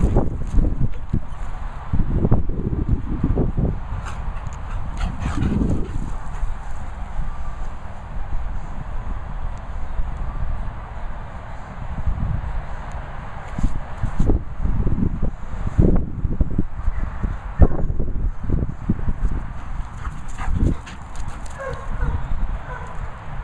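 Dogs' paws thud and rustle on grass.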